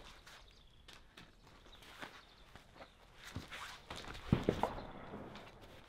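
A rifle clunks as a man sets it down on a mat.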